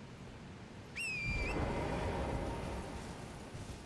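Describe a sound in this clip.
A bright magical chime rings out and shimmers away.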